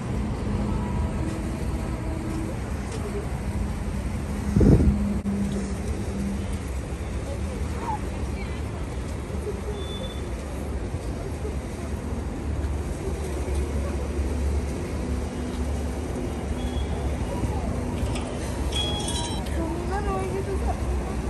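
A vehicle engine idles with a low rumble.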